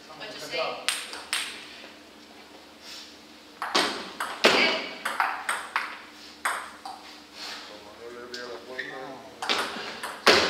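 A ping pong ball clicks back and forth off paddles and a table in an echoing hall.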